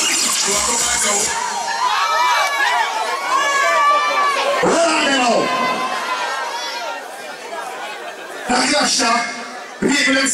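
Loud dance music plays over loudspeakers.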